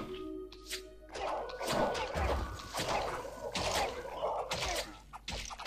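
Swords clash and thud in a brief fight.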